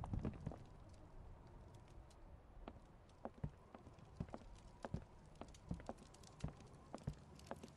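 A log fire crackles and pops.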